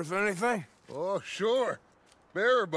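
A second man answers briefly in a gruff voice.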